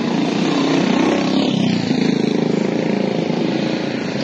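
A motorcycle engine putters past at close range.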